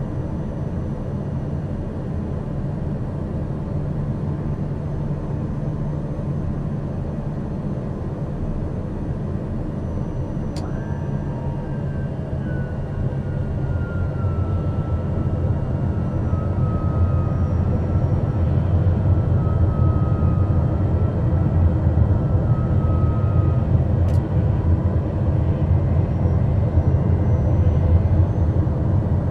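A single-engine turboprop drones steadily from inside the cockpit, growing louder.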